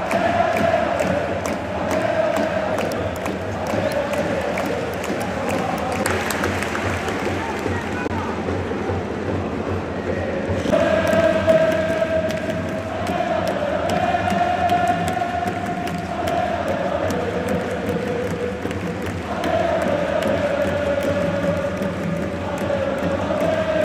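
A large stadium crowd chants and sings in unison.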